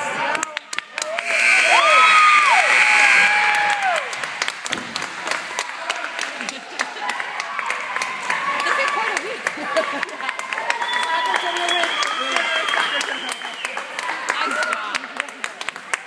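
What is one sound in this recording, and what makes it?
Young girls shout and squeal excitedly.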